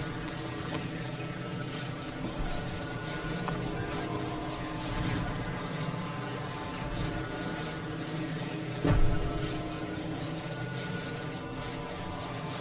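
A steady magical hum drones.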